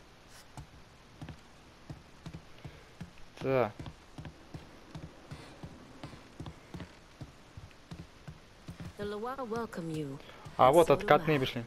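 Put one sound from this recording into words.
Footsteps thud steadily on wooden stairs and floorboards.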